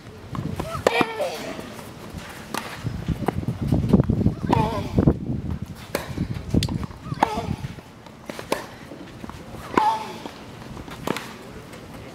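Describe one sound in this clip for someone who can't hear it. A tennis ball is struck back and forth with rackets.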